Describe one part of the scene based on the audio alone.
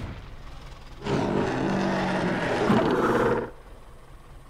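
A large flying reptile lets out a harsh, drawn-out screech.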